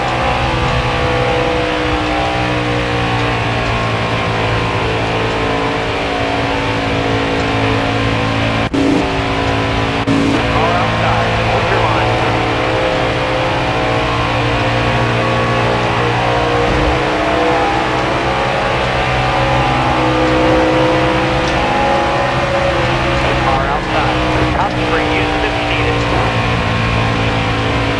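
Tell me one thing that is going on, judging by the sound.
A race car engine roars steadily at high revs.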